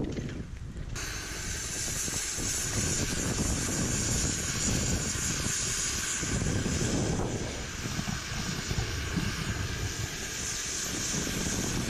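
Wind-driven snow hisses across the ground.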